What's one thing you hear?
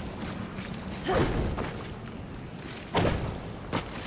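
A heavy stone door grinds and thuds.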